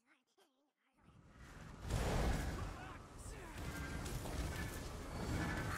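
Spells crackle and blast in a game battle.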